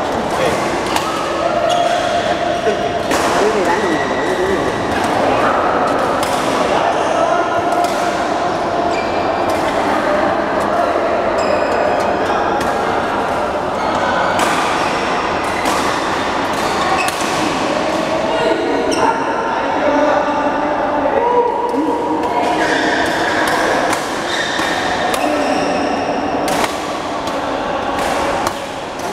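Many men talk and call out across the echoing hall.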